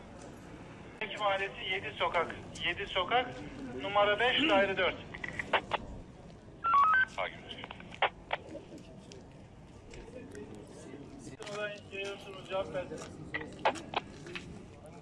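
A man talks loudly and with agitation close by.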